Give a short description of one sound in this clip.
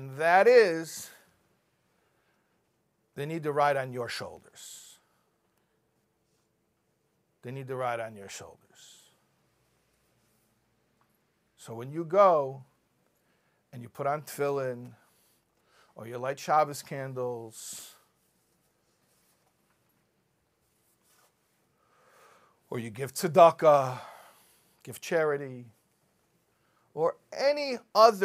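A middle-aged man speaks with animation into a microphone, in short phrases with long pauses.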